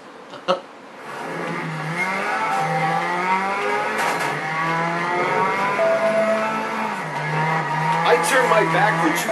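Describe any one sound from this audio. A race car engine roars steadily, its pitch rising and falling as it shifts gears.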